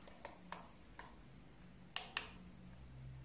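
A thermostat dial clicks softly as it is turned by hand.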